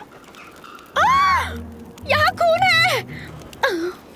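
A young woman cries out in alarm close by.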